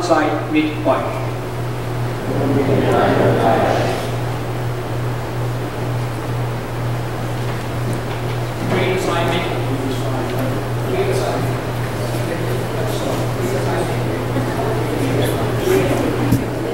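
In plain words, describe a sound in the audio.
A congregation of men and women sings together in a large echoing hall.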